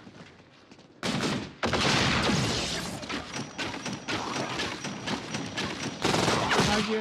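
Pistols fire in rapid bursts of gunshots.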